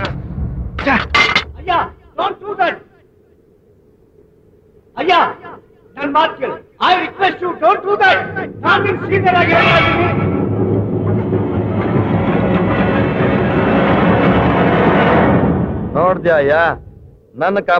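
A man speaks forcefully and angrily, close by.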